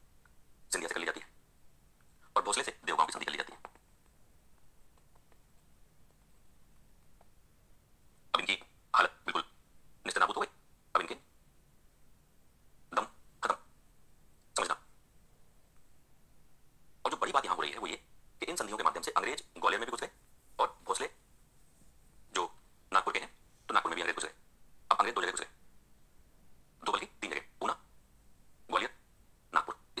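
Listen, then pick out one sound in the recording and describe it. A man lectures with animation through a microphone, pausing often.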